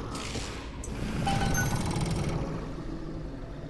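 A metallic fanfare sounds for a success.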